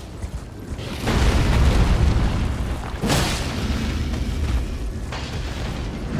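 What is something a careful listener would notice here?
A huge beast roars with a deep, rumbling growl.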